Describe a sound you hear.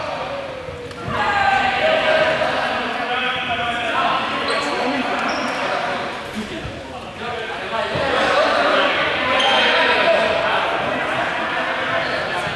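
Young people shout and call out across a large echoing hall.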